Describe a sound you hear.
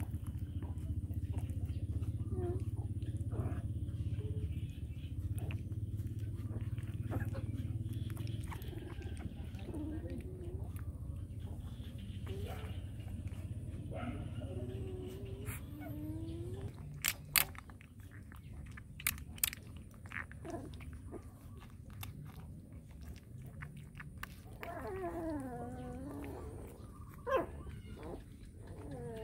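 A puppy suckles noisily at a bottle, with small wet smacks.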